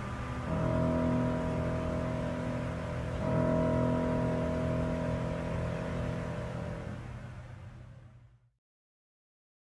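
An acoustic guitar strums chords that ring out and fade.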